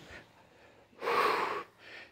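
A young person blows out a breath with a soft rush of air.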